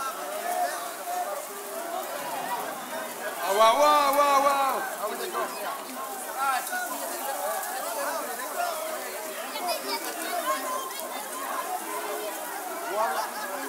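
A band plays loud live music through loudspeakers outdoors.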